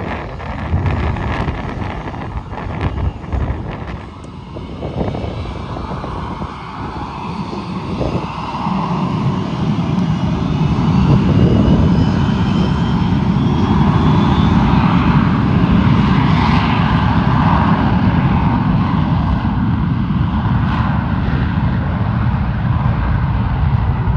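A jet airliner's engines roar loudly, building up as it speeds down a runway.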